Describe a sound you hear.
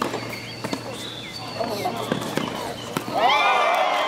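A tennis ball is struck sharply with a racket.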